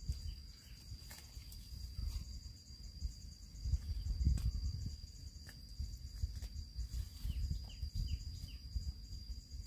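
A hoe scrapes and chops at soil.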